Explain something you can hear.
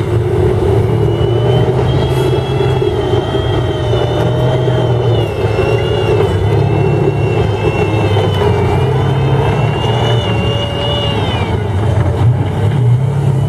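A tank's engine rumbles loudly and steadily.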